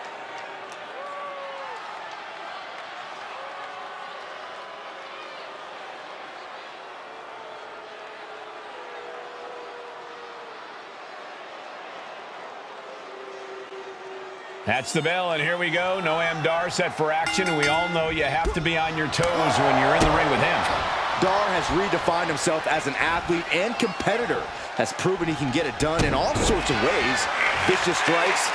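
A crowd cheers and roars in a large echoing arena.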